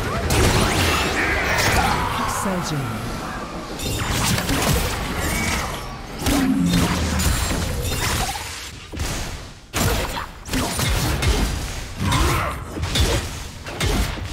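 Hits and blasts thud in quick bursts during a fight.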